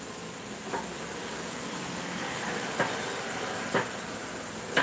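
Small objects knock lightly on a counter.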